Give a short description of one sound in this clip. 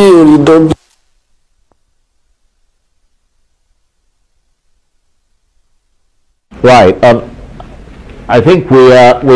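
A middle-aged man speaks steadily into a microphone, as if reading out the news.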